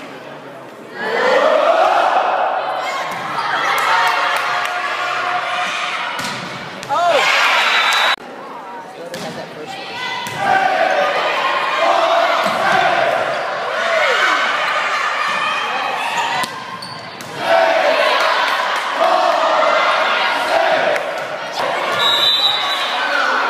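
A crowd of spectators cheers and shouts in an echoing gymnasium.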